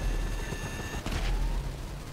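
A loud explosion booms nearby.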